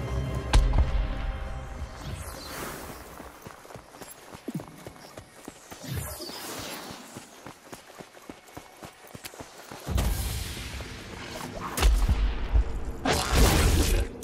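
Footsteps crunch on sand.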